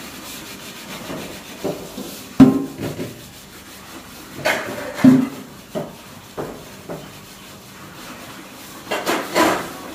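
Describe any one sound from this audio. A large metal pot clanks and scrapes as it is scrubbed and turned.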